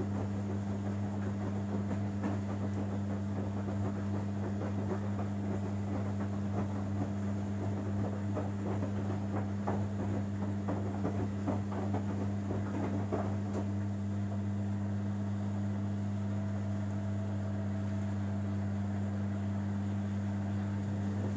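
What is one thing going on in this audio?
A front-loading washing machine hums.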